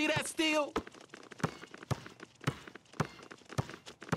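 A basketball bounces on a hard outdoor court.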